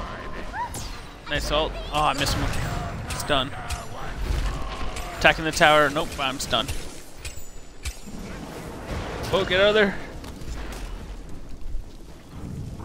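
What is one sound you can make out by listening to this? Magic spells whoosh and crackle during a fight.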